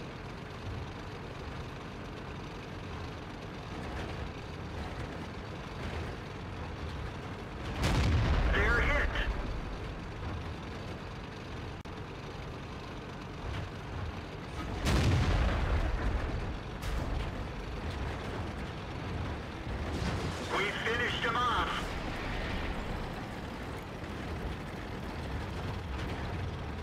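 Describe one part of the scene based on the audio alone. A tank engine rumbles as the tank drives.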